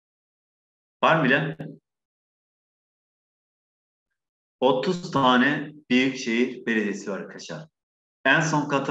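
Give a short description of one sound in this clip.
A man speaks calmly into a close microphone, explaining in short bursts with pauses.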